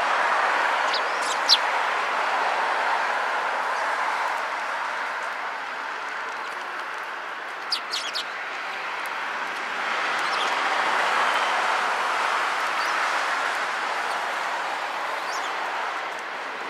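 Sparrows chirp in short, sharp bursts.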